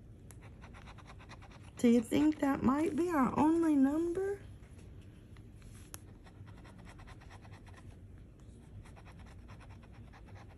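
A coin scrapes across a scratch card with a dry, rasping sound.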